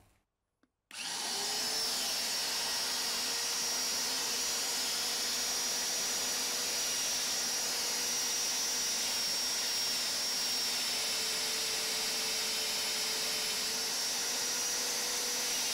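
A drill motor whines loudly and steadily.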